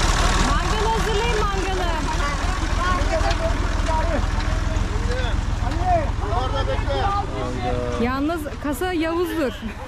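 Voices of a group chatter outdoors.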